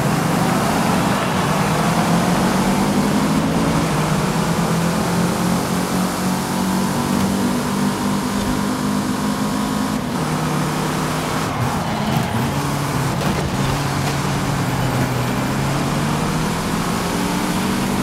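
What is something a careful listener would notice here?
A car engine roars steadily at high revs, shifting gears as it speeds up.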